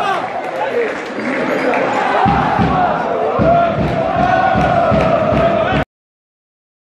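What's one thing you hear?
A large crowd of fans chants loudly in an open stadium.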